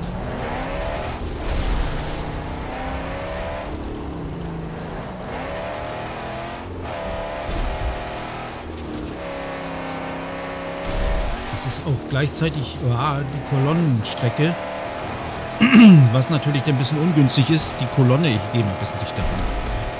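Tyres crunch and skid on gravel and snow.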